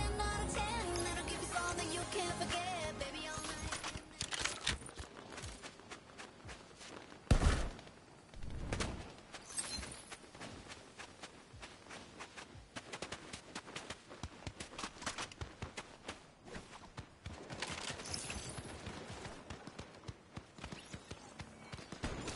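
Quick footsteps patter over sand and stone.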